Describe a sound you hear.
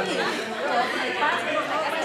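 A middle-aged woman exclaims in surprise.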